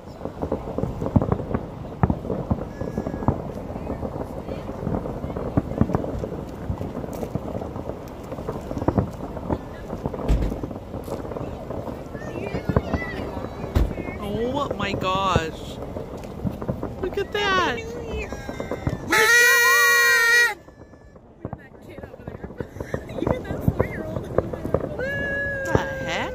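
Fireworks pop and crackle in the distance, outdoors.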